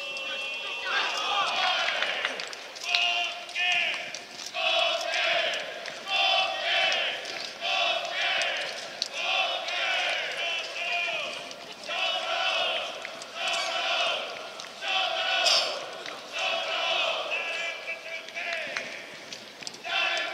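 A group of young male players shout a chant together in loud, rhythmic bursts outdoors.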